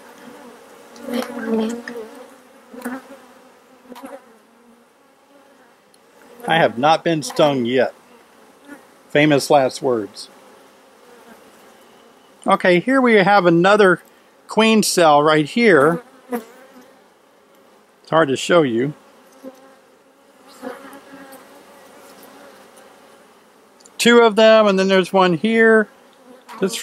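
Bees hum and buzz steadily close by.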